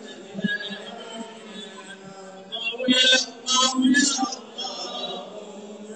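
A large group of men chants together in a steady drone.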